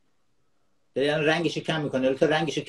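A younger man speaks with animation over an online call.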